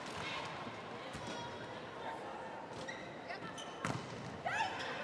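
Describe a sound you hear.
A volleyball is struck hard several times.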